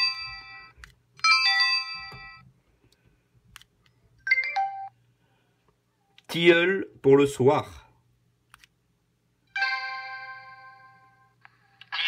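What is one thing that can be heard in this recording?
An electronic device beeps in short tones.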